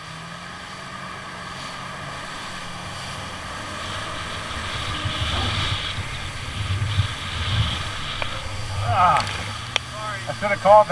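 Water splashes and sprays behind a jet ski.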